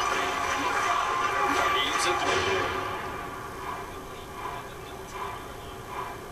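A stadium crowd roars through a television speaker, then quiets down.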